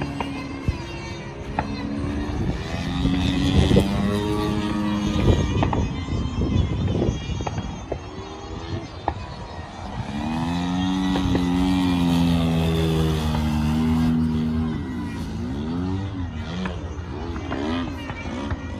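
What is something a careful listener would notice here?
A model plane's engine whines loudly overhead, rising and falling in pitch as it swoops past.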